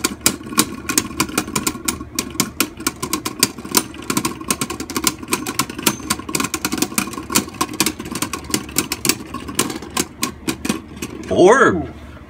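Spinning tops click and clatter sharply as they collide.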